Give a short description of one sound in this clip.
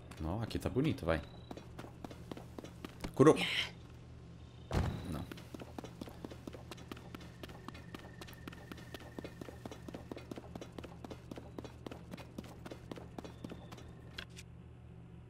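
Footsteps patter quickly over dry grass and dirt.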